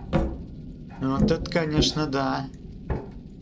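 A wooden cabinet door creaks open.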